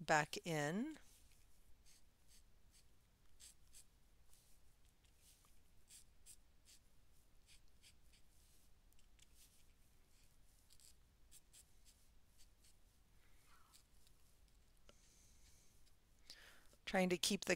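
A pen scratches and taps lightly on paper.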